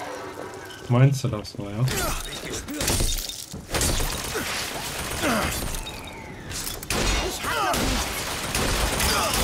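Gunshots bang loudly in rapid bursts.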